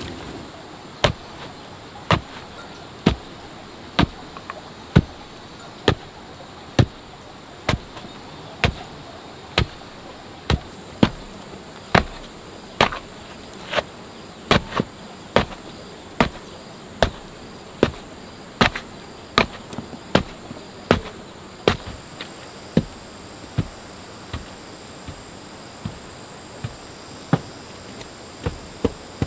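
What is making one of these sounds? A wooden pole thuds steadily into packed soil, over and over.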